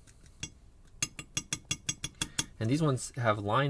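Small metal lock pins click and tap against each other.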